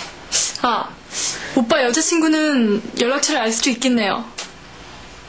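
A young woman speaks calmly and earnestly close by.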